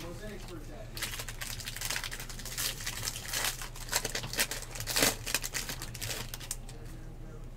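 A foil card wrapper crinkles and rustles as it is torn open.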